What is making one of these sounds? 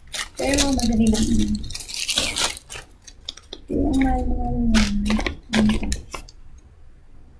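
Paper crinkles and rustles in hands.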